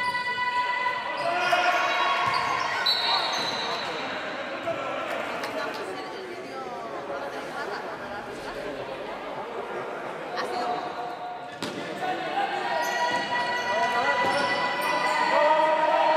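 Young women call out to each other in a large echoing hall.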